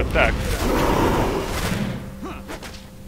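A burst of flame roars and crackles.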